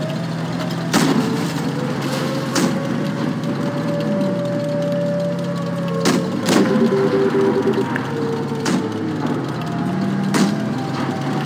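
Cannon shots boom sharply now and then.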